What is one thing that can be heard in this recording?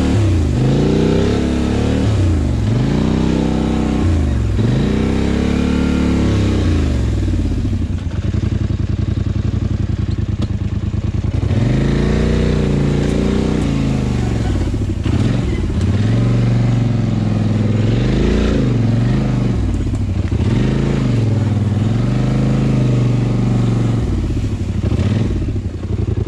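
A quad bike engine revs up and down loudly, close by.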